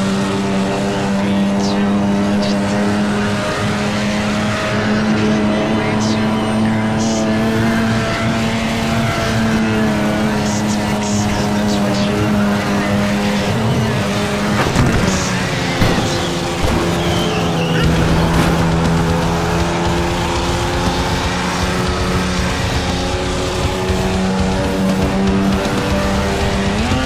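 A car engine roars steadily at high revs, rising and falling as gears shift.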